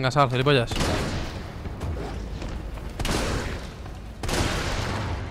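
A shotgun fires loud booming blasts that echo.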